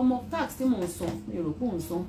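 Papers rustle.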